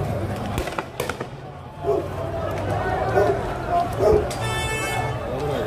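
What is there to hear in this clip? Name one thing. A crowd of men shouts and chants outdoors.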